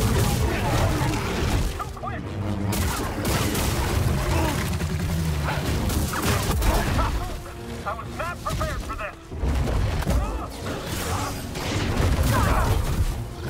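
Energy blades hum and clash loudly.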